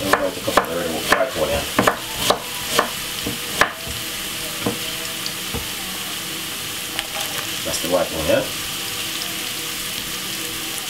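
Carrots sizzle steadily in hot oil in a pan.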